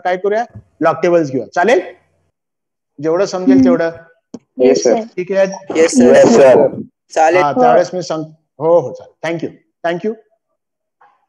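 A man lectures calmly, heard through an online call.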